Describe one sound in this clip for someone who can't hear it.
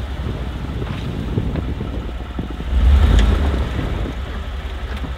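A truck engine rumbles low as the truck rolls slowly forward.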